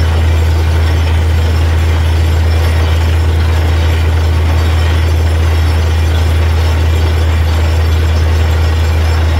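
A drilling rig's engine roars steadily close by.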